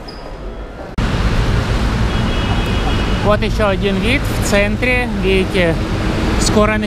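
Traffic rumbles along a wet city street outdoors.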